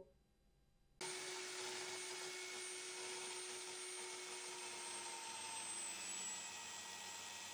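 An angle grinder runs with a steady whine.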